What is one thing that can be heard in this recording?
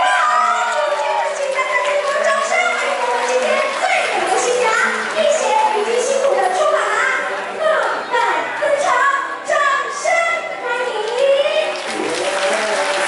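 A young woman speaks with animation through a microphone in a large echoing hall.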